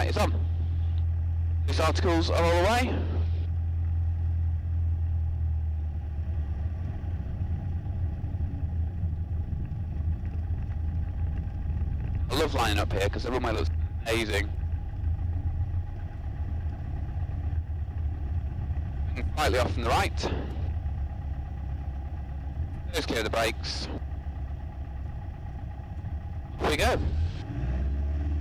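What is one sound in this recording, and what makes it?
The piston engine of a single-engine light aircraft drones while taxiing, heard from inside the cabin.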